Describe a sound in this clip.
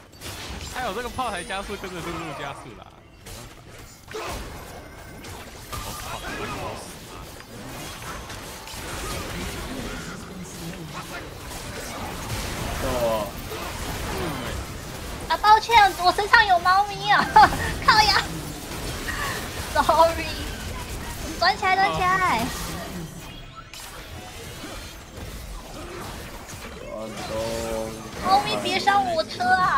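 Fantasy battle sound effects crackle and whoosh as spells are cast.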